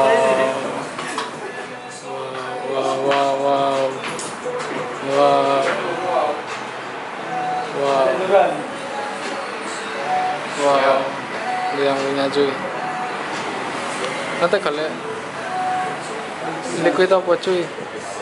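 A young man talks and laughs close by with animation.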